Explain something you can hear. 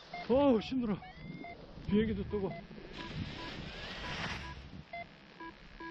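A paraglider wing flutters and settles onto the ground.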